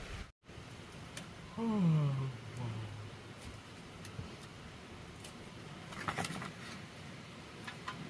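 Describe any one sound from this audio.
Pieces of wood and stone clatter and knock as they are set down.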